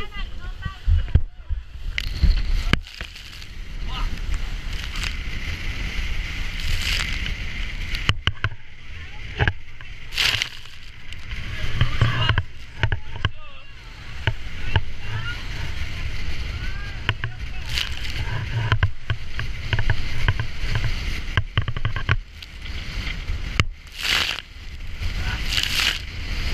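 Waves slap and splash against a boat's hull.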